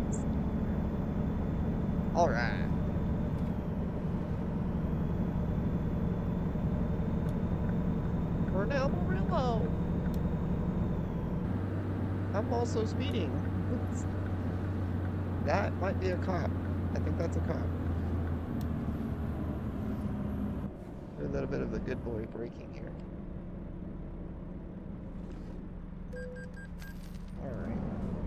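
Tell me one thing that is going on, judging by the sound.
A truck engine drones steadily, then drops to a quieter idle.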